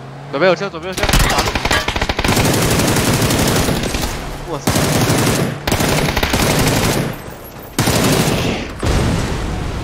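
A machine gun fires in long, loud bursts.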